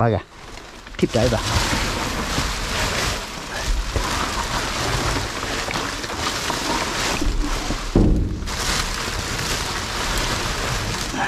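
Plastic wrapping crinkles and rustles as hands rummage through it.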